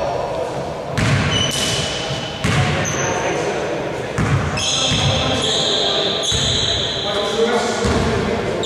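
A basketball bounces with hollow thuds on the court.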